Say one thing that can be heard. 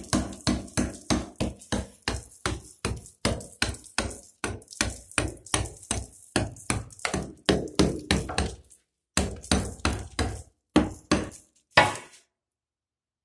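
A hammer strikes a wall in fast, repeated blows.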